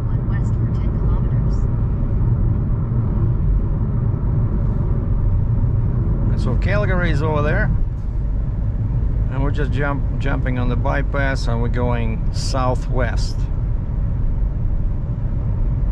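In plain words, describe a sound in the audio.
A car drives steadily along a highway, with a low road rumble heard from inside.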